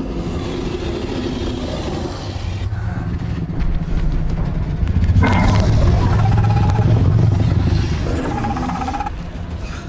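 A creature snarls and roars loudly.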